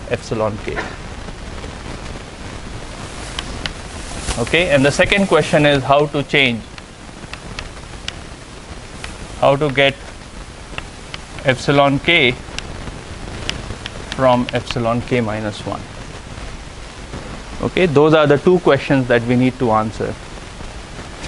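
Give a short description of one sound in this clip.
A man speaks calmly in a large room, with a slight echo.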